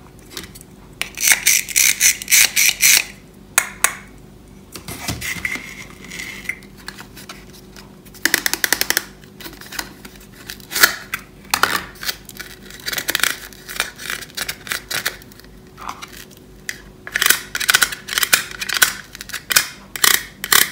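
Plastic toy pieces click and clatter as they are handled.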